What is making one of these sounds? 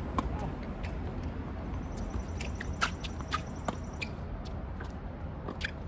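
A tennis ball is struck with a racket with a sharp pop.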